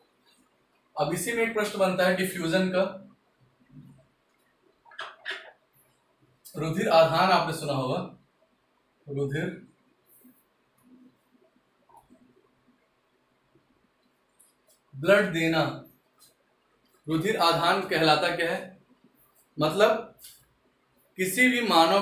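A man speaks calmly and clearly, close by, in short bursts with pauses.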